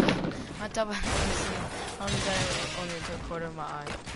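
Wooden panels snap into place with knocks.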